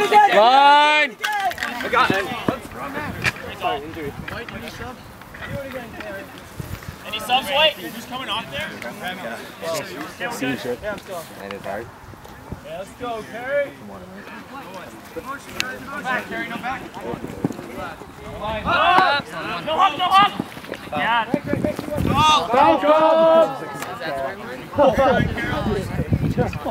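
Young men talk and shout close by, outdoors.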